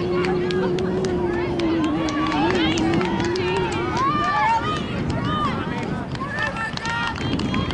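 A crowd of spectators shouts and cheers from a distance, outdoors.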